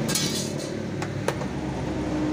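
A plastic panel clicks and knocks.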